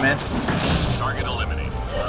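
An energy blast crackles and booms.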